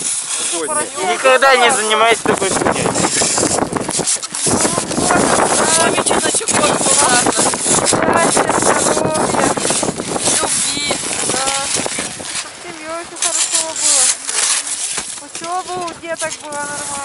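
A saw rasps through packed snow.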